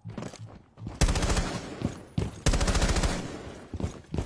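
An assault rifle fires loud bursts of gunfire.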